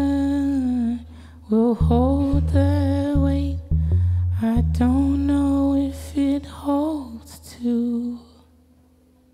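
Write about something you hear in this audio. A live band plays music with a deep, thumping bass.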